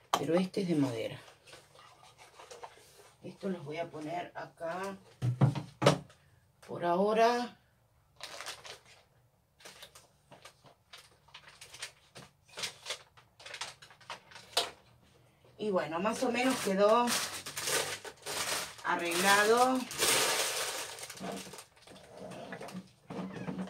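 Objects clatter and rustle as a woman handles them.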